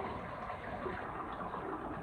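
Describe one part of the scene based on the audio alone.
Water gently laps and trickles in a pool.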